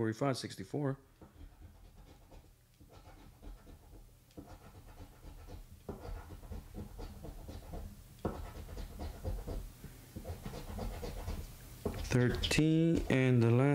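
A coin scratches across a scratch-off lottery ticket.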